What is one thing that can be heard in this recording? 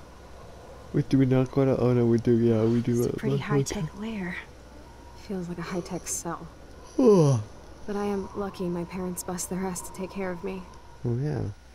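A young woman speaks calmly and wryly, close by.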